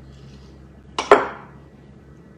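A jar lid clinks sharply.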